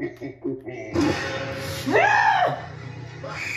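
A loud shrieking jump-scare sound plays through a television speaker.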